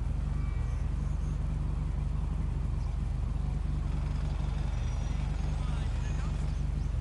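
A motorcycle engine idles nearby with a low, steady throb.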